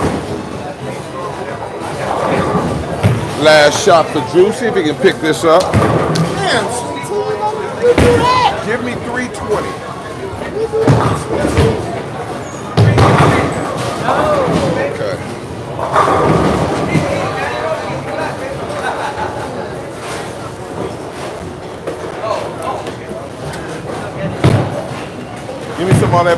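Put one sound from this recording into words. Men talk and cheer with animation in a large echoing hall.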